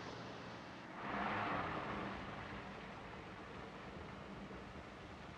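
A car rolls to a stop.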